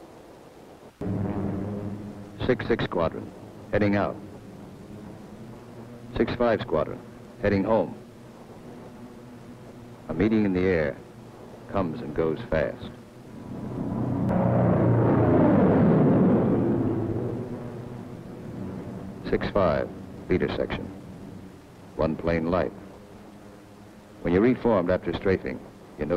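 Propeller aircraft engines drone steadily.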